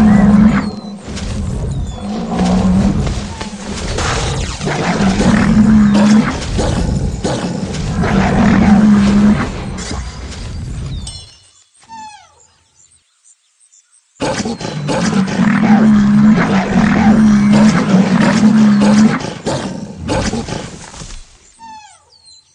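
Large animals bellow and grunt loudly in a fight.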